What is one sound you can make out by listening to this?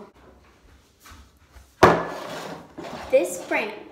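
Plastic jars knock down onto a hard counter.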